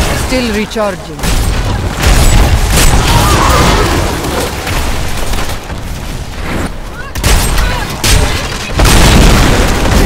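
Spells and weapons crash and boom in a game battle.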